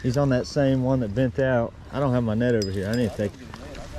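A fishing reel clicks as its handle is wound.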